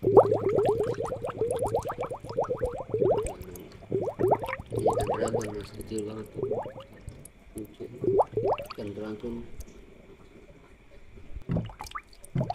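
Air bubbles gurgle softly in a fish tank.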